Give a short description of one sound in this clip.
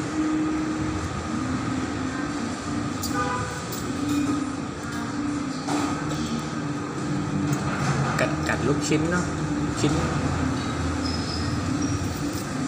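A young child slurps noodles.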